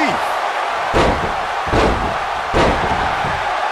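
Heavy blows thud against a body several times.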